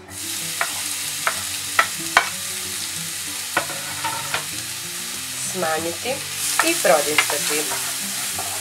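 A wooden spatula scrapes and knocks against a frying pan.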